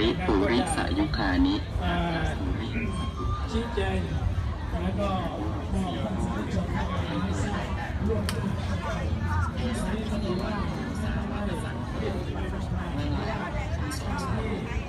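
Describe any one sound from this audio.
A crowd of people chatter all around outdoors.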